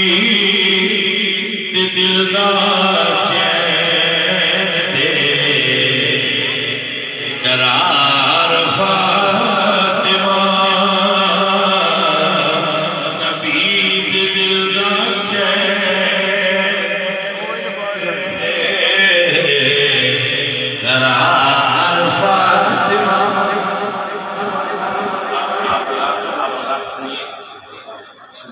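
A man sings a long melodic chant loudly through a microphone, heard over loudspeakers in an echoing hall.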